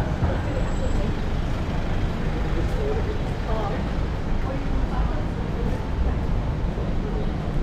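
A van's engine idles close by.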